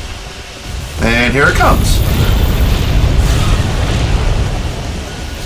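A loud explosion booms and rumbles.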